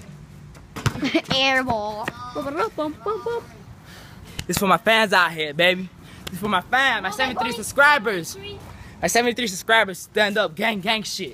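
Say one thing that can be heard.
A young man talks close by, outdoors.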